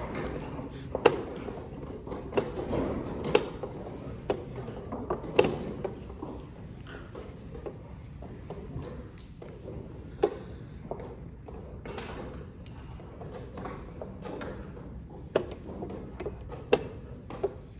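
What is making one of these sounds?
Chess pieces clack onto a wooden board.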